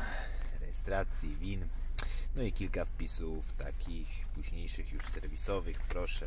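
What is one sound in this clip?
Paper pages rustle and flip as a booklet is leafed through.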